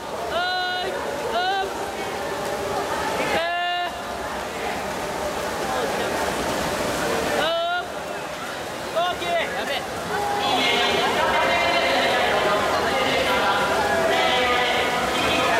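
Young people shout and cheer loudly in a large echoing hall.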